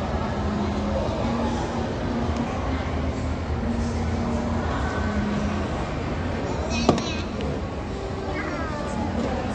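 A small girl babbles close by.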